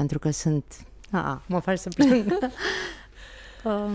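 A woman laughs briefly.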